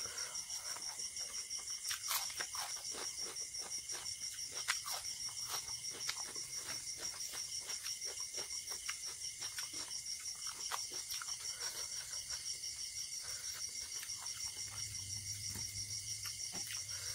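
A man chews food loudly and wetly, close to a microphone.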